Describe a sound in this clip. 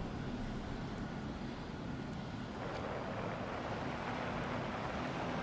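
Menu clicks tick softly.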